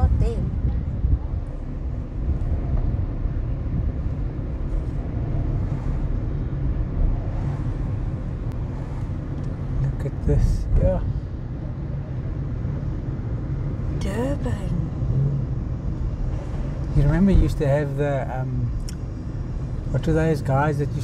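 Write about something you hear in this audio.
Tyres roll on a smooth road.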